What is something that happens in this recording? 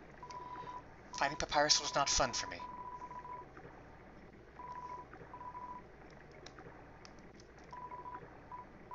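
Quick electronic blips chirp in short bursts.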